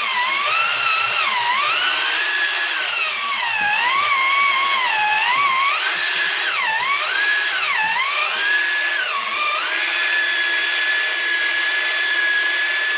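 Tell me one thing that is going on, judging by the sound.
A small electric pottery wheel whines, its pitch dipping and rising as hands press on the clay, then holding steady.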